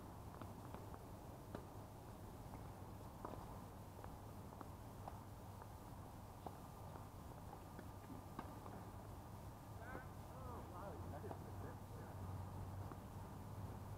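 Tennis balls are struck with rackets and bounce on a hard court.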